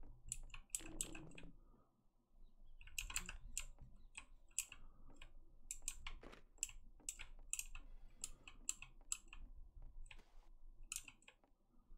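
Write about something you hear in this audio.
Footsteps tread steadily across a wooden floor.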